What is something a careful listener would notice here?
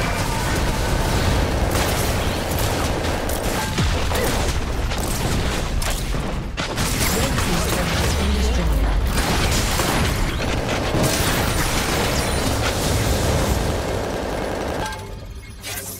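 Game spell effects burst and crackle in a busy fight.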